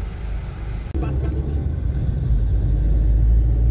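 A car engine speeds up as the car pulls away.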